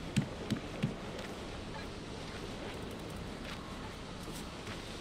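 Footsteps thump on wooden planks, then patter softly on soil.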